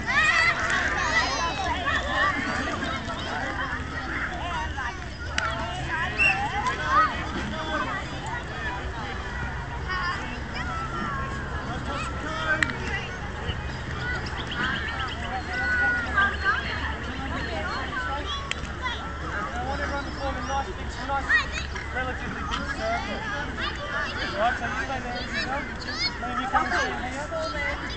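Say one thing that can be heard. Young children shout and chatter outdoors across an open field.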